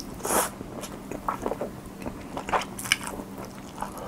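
A young man slurps noodles loudly close to a microphone.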